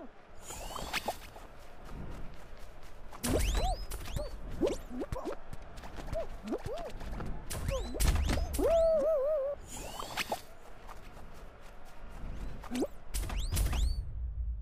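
Playful springy boing effects pop up again and again.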